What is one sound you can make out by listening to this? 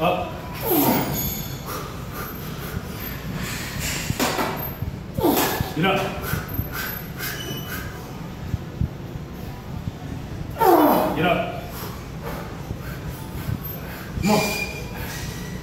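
Young men shout loud encouragement nearby in an echoing room.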